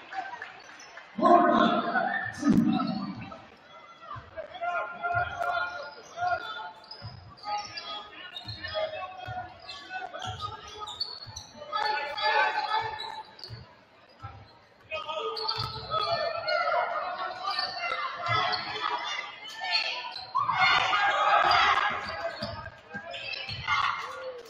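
Sneakers squeak on a hardwood court.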